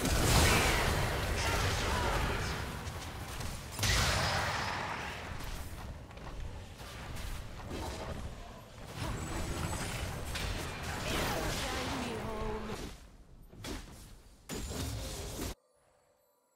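Video game spell effects blast and crackle during a fight.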